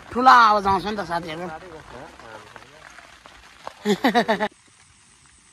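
A man talks loudly and playfully close to a microphone.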